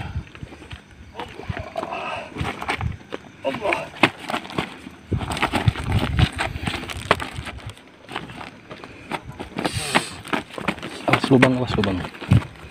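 Feet scuff and crunch on loose stones.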